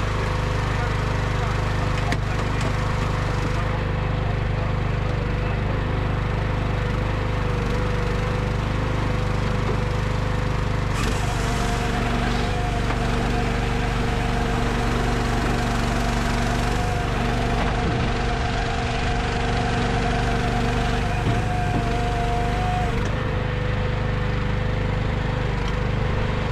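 A man talks calmly nearby over the engine noise.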